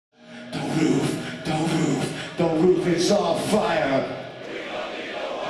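A male singer sings loudly into a microphone.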